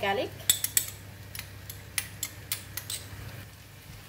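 A spoon taps lightly against a pan.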